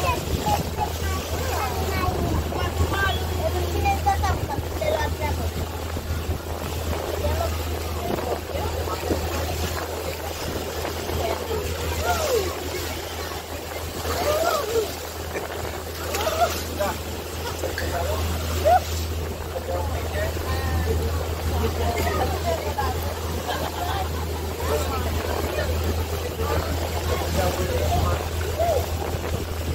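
Wind blows past loudly.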